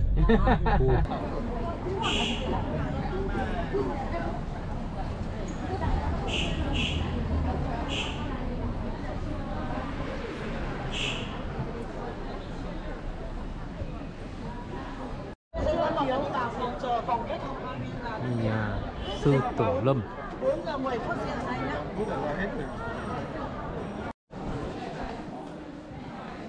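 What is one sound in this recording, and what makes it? A crowd of people chatters on a busy street outdoors.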